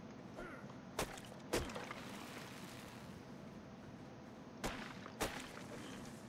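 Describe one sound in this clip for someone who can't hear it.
An axe thuds into wood in sharp, single blows.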